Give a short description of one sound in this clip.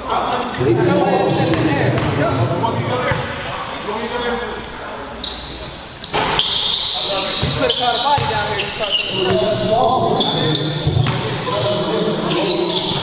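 Young men call out to each other in an echoing gym.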